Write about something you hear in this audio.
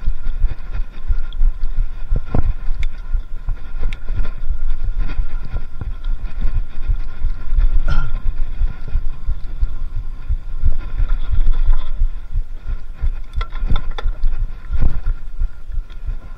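Bicycle tyres rumble and bump over a rough dirt trail.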